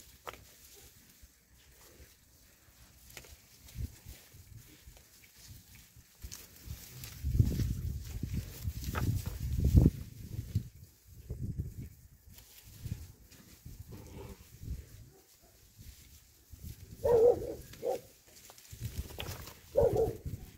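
Puppies rustle through dry grass and leaves.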